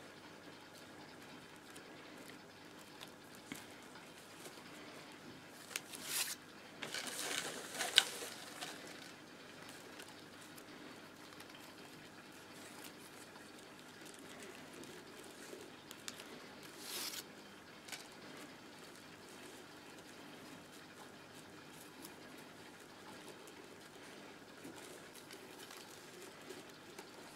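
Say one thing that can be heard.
Stiff paper tubes rustle and tap as hands weave a basket.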